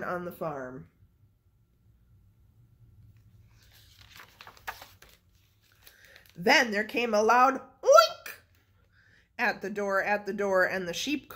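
A young woman reads a story aloud, close by, in a calm, expressive voice.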